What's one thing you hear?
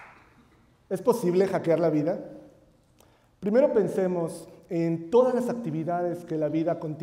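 A man speaks with animation through a microphone in a large hall.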